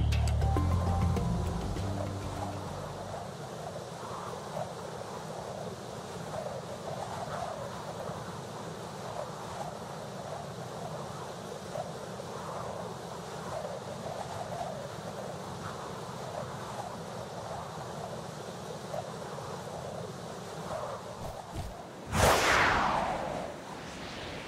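Wind rushes steadily past a flying creature.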